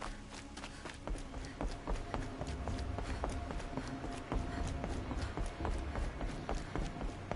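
Footsteps thud rapidly on a wooden bridge.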